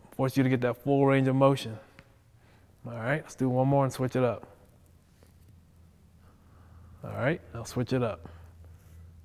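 A man speaks calmly and clearly into a nearby microphone.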